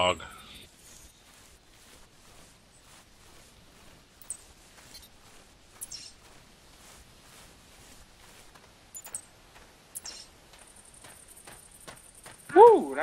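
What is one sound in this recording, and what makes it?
Footsteps rustle through leafy undergrowth at a steady walking pace.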